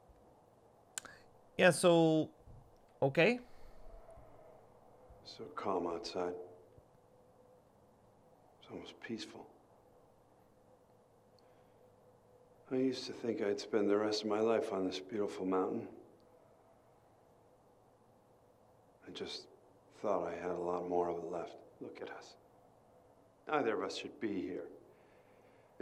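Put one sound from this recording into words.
A man talks into a microphone in short bursts with pauses.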